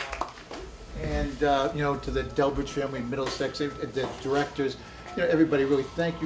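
A middle-aged man speaks into a microphone to an audience.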